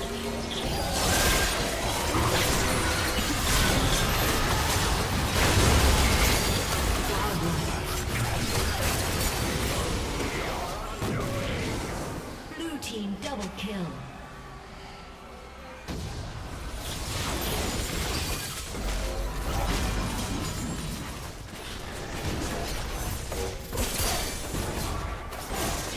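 Spell blasts and impacts from a video game crackle and boom in a busy fight.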